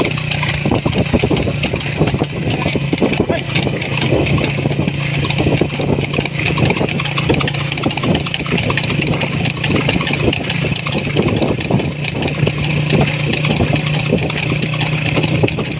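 A horse's hooves clatter rapidly on a paved road at a trot.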